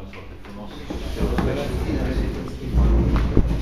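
Clothes rustle and a chair shifts as a man stands up.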